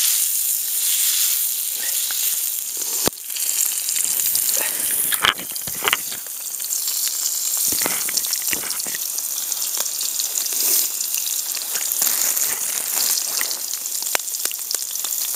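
Meat sizzles in a pan over a fire.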